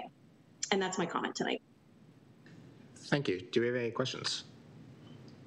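A middle-aged woman speaks briefly and calmly over an online call.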